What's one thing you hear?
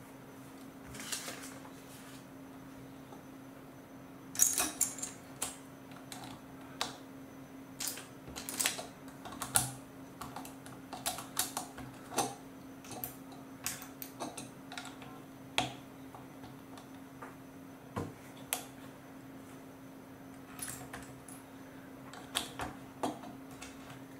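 Plastic toy bricks click and rattle as hands snap them together.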